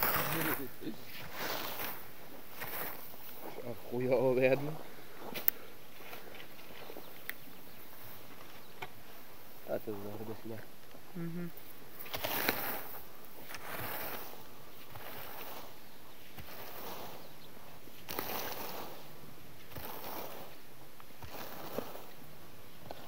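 A rake swishes and scrapes through cut grass, stroke after stroke.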